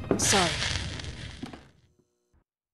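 A cigarette butt is crushed and scraped in a ceramic ashtray.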